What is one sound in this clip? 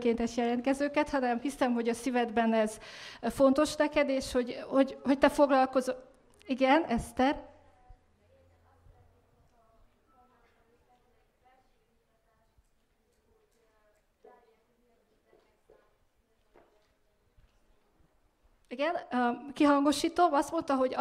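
A young woman speaks with animation into a microphone.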